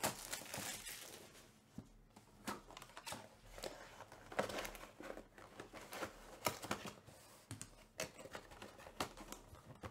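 A cardboard box is opened and rustles as hands move inside.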